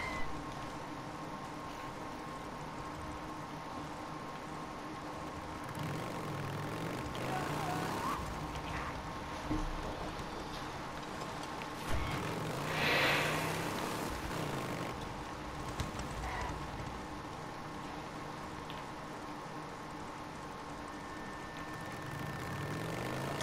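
A motorcycle engine rumbles and revs as it rides.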